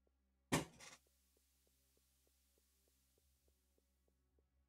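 Footsteps tap softly on a metal floor.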